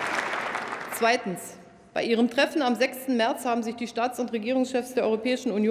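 A middle-aged woman speaks calmly into a microphone in a large echoing hall.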